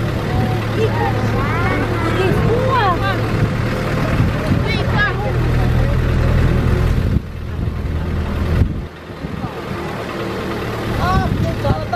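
Several men and women call out and chatter nearby outdoors.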